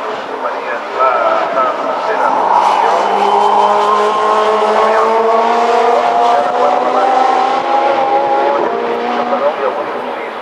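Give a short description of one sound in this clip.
Racing car engines roar past on a track, their pitch sliding as they go by.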